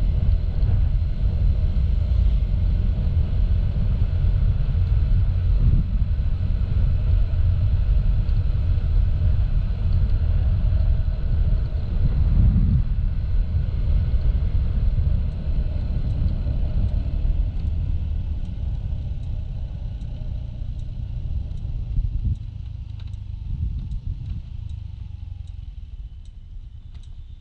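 A motor scooter engine hums steadily while riding along.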